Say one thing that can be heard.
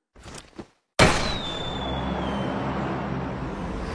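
A flare gun fires with a sharp pop and a hissing whoosh.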